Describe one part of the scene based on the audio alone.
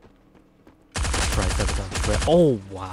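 Rapid bursts of gunfire ring out close by.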